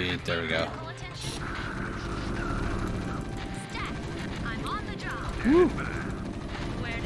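Video game gunfire and battle effects play.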